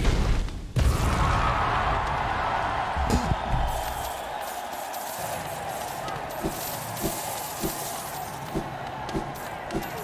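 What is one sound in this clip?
Sword slashes and hits clang in a game.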